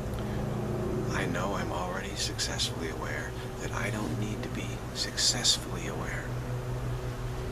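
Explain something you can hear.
An older man speaks calmly and close by.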